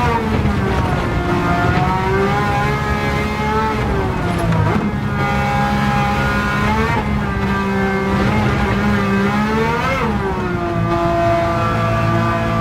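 A racing car engine roars loudly, rising and falling in pitch as the gears shift.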